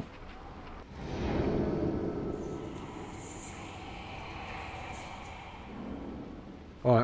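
A ghostly whoosh swells and slowly fades.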